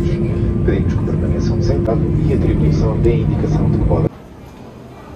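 A steady low roar of an airliner cabin fills the air.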